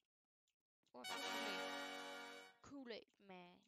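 A short cheerful jingle plays.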